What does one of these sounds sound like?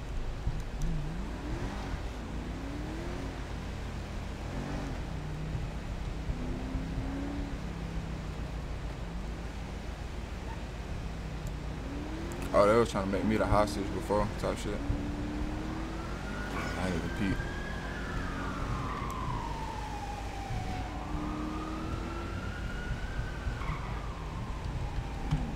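A car engine hums and revs as a car drives along.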